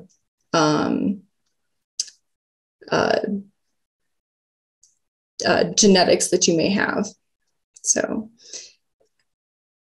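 A young woman speaks calmly through an online call, in short phrases with pauses.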